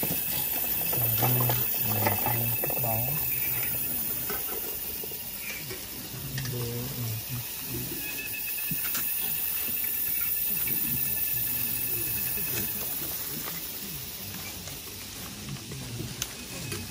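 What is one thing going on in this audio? A man's low voice chants nearby.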